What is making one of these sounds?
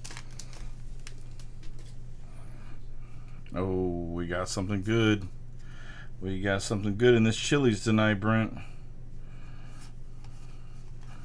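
Trading cards rustle and flick as they are shuffled by hand.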